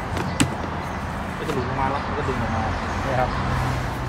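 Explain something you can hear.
A plastic glove box panel clatters as it is lowered.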